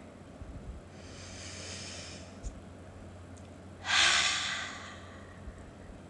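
A woman breathes in deeply and exhales audibly.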